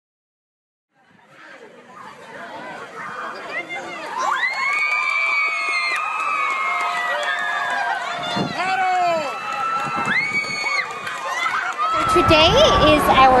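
A crowd of children and adults cheers and shouts loudly outdoors.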